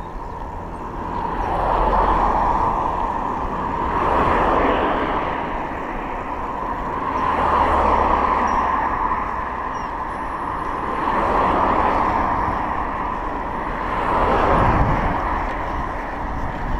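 Cars rush past on the road one after another.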